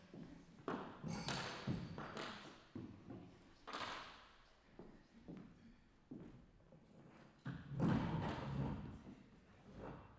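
A metal chair scrapes and knocks on a wooden floor.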